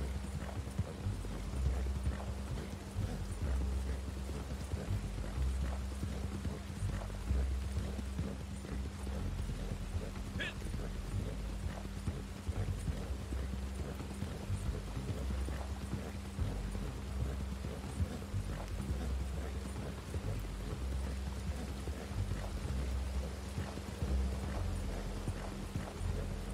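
Horse hooves thud on a dirt path at a steady gallop.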